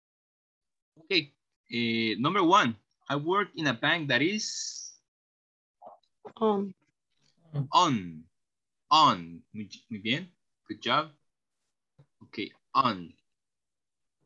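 A young woman speaks clearly, teaching over an online call.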